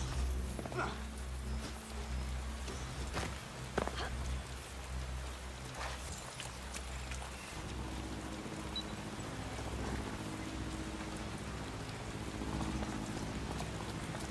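Footsteps run quickly over wet pavement.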